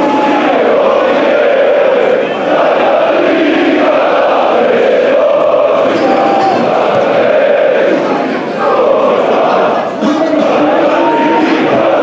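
A large stadium crowd chants and sings loudly all around, echoing through the stands.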